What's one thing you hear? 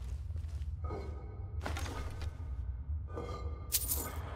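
Coins clink as they are picked up.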